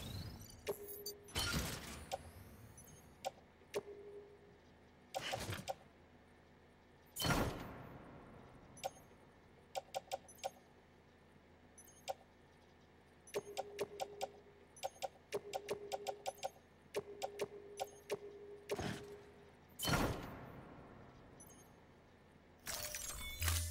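Short electronic menu clicks and beeps sound again and again.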